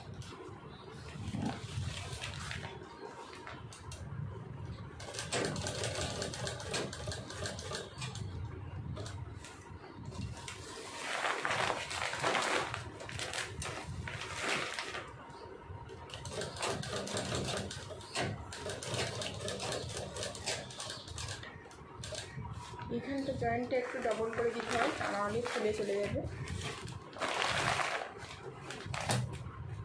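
A sewing machine stitches through fabric.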